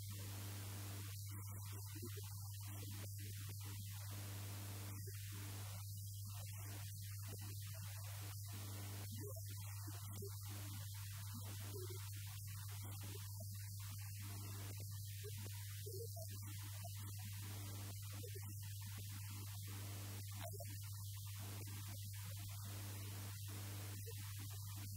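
A middle-aged man speaks with animation into a microphone over loudspeakers.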